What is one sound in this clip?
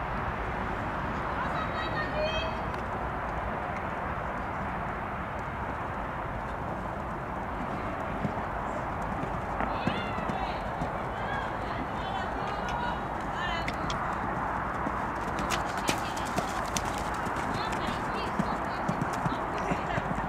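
A pony's hooves thud softly on sand as it canters.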